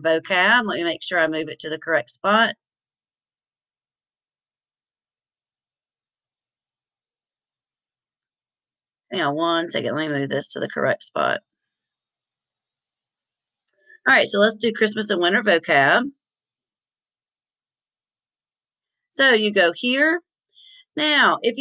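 A middle-aged woman speaks calmly and closely into a microphone, in short bursts with pauses.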